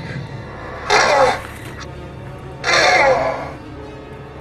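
A dinosaur lets out two loud, harsh screeches.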